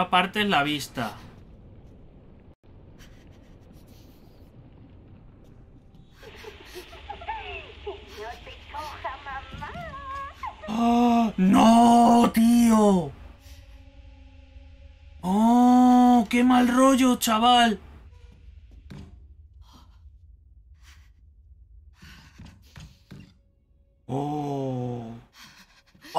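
A young man talks and exclaims with animation into a close microphone.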